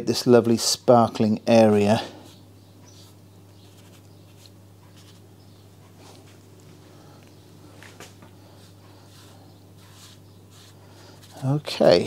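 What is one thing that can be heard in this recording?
A paintbrush dabs and brushes softly on paper.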